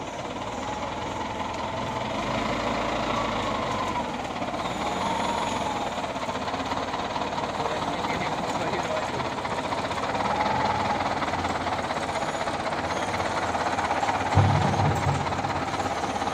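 Tyres of a wheel loader crunch over gravel.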